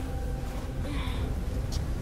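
A young man groans in pain close by.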